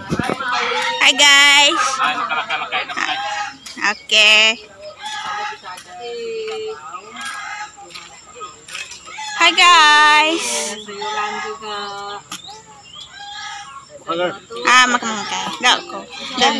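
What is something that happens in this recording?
A woman laughs and chatters nearby.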